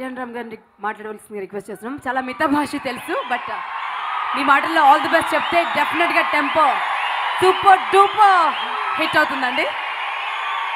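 A woman speaks with animation into a microphone over loudspeakers.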